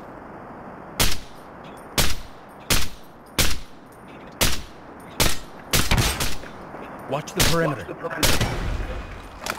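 A rifle fires loud, sharp shots, one after another.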